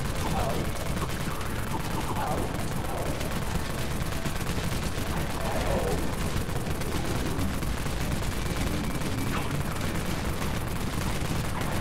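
Monsters snarl and growl.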